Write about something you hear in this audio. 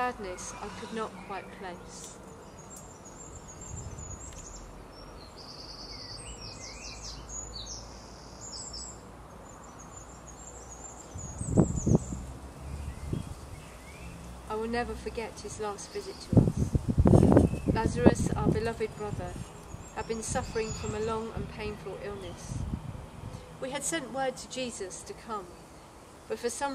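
A woman speaks calmly and reads out close by.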